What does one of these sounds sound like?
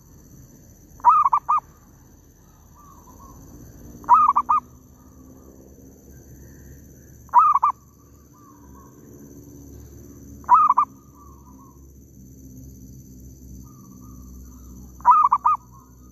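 A bird chirps in short, loud bursts every few seconds.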